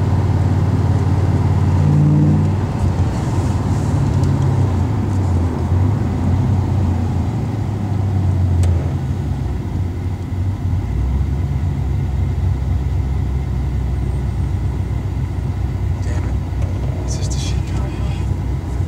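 A car engine drones steadily from inside the car, its pitch shifting as the car changes gear.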